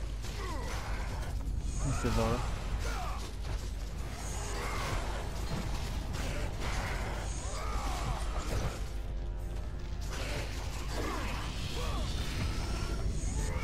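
Blades whoosh and slash through the air.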